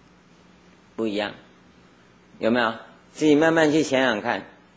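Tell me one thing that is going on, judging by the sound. An elderly man speaks calmly into a microphone in short phrases.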